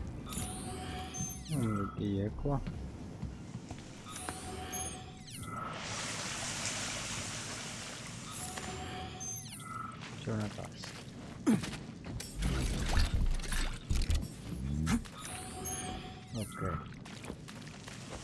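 An electronic scanner pulses with a sweeping, whooshing hum.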